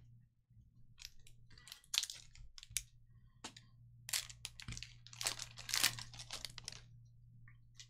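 A foil wrapper crinkles and tears as hands open it.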